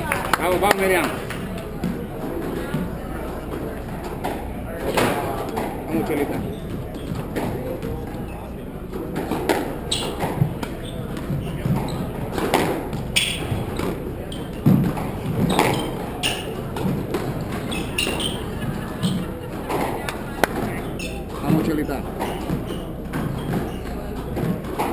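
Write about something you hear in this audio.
Sneakers squeak and patter on a wooden floor.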